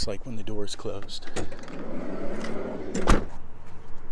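A van's sliding door latch clunks.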